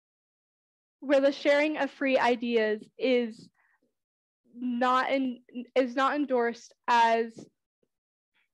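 A young woman speaks clearly to an audience in a quiet hall, with pauses.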